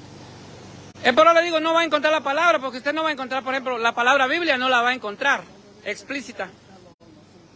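A man talks loudly and with animation close by, outdoors.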